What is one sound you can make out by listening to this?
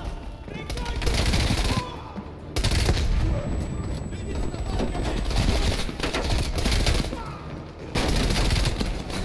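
A rifle fires rapid bursts of gunshots in a large echoing hall.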